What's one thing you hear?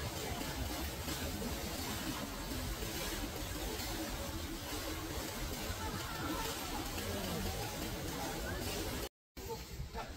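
Water flows and trickles steadily in a stream.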